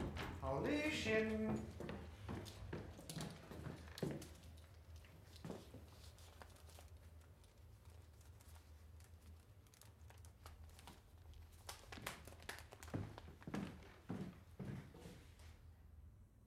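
Footsteps walk along a wooden floor indoors.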